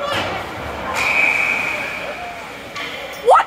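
A referee blows a whistle in a large echoing rink.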